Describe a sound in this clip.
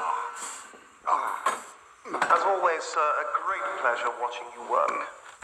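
A man groans and speaks in a strained voice close by.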